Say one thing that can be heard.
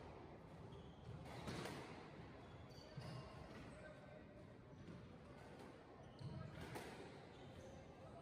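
A squash ball smacks off rackets and walls in an echoing walled court.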